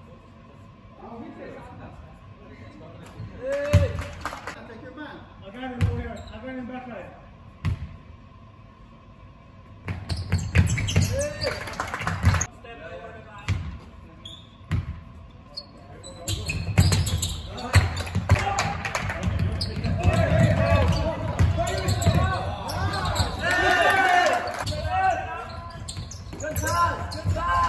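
Players shout and call out to each other across the hall.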